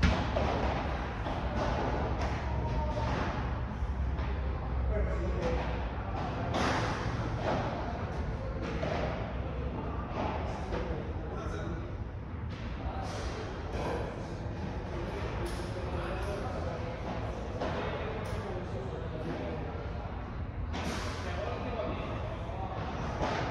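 Two men talk casually nearby.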